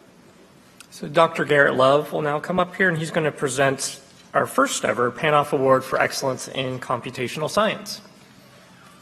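A man speaks calmly into a microphone over a loudspeaker in a large echoing hall.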